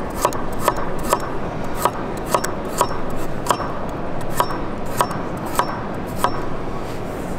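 A knife chops quickly and rhythmically on a wooden board.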